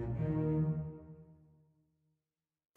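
Strings play a short sustained chord that fades away.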